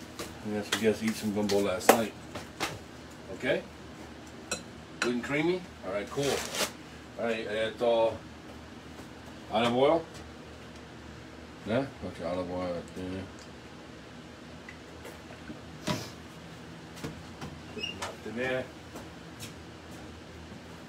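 Dishes and utensils clink and knock on a counter.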